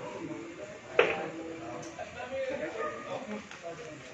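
Billiard balls knock together on the table.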